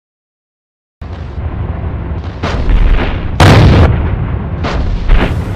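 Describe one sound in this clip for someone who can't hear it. A tank cannon fires with heavy booms.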